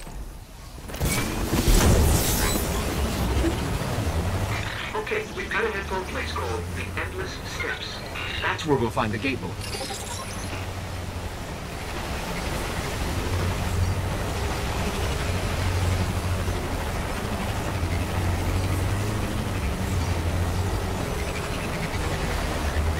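A hovering vehicle's engine hums steadily and whooshes along.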